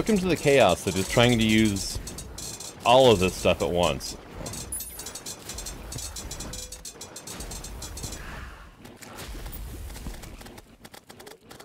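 Rapid magic blasts and hit sounds crackle from a video game fight.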